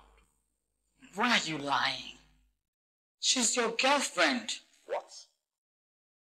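A woman speaks with emotion nearby.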